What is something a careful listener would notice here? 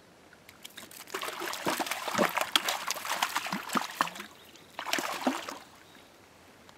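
Water splashes as a fish thrashes at the shore.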